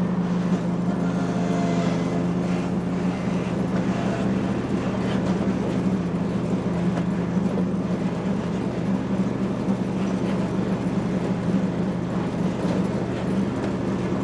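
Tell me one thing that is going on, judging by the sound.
Mower blades cut through tall grass with a rushing whir.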